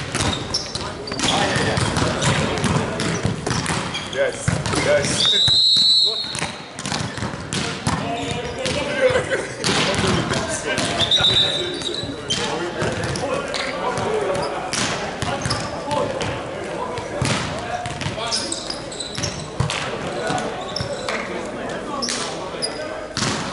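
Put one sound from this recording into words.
Men call out and chatter across an echoing hall.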